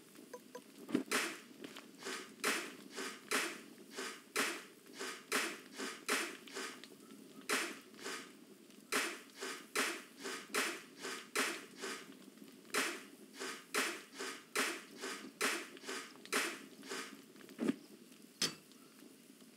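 A shovel scrapes and scoops coal over and over at a steady pace.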